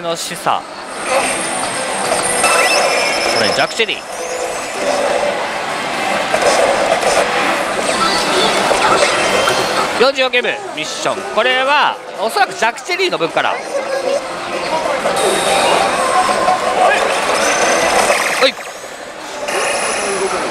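A slot machine plays loud electronic music and sound effects.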